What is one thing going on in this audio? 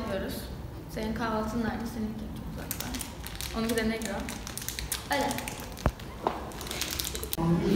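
A foil wrapper crinkles in hands.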